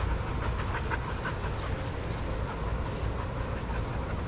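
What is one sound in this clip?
Dogs' paws patter and scuff across sand.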